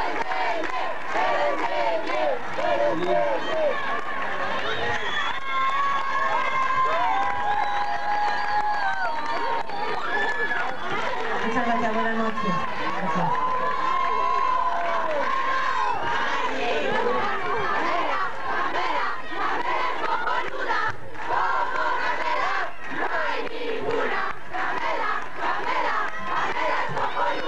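A band plays loud live music outdoors.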